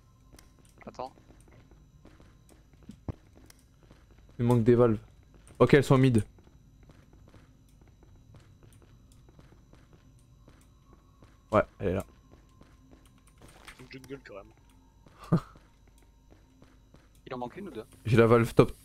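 Footsteps tap on a hard floor with a slight echo.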